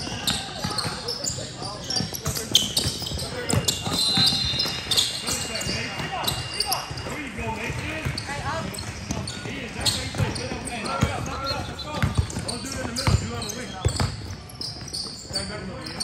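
A basketball bounces on a court floor.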